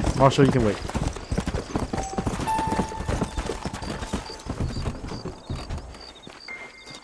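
A horse gallops, hooves pounding on hard dirt.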